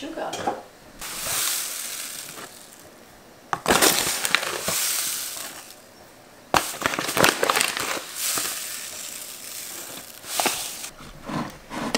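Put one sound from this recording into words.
Sugar pours out of a bag into a glass jar with a hissing patter.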